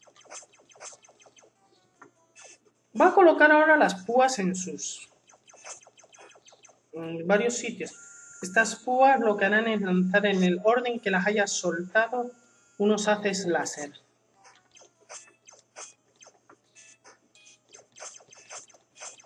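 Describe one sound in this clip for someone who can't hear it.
Electronic game sound effects blip and chime from a small speaker.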